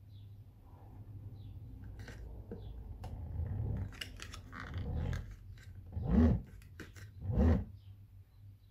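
Hands scrape and knock against a plastic drum.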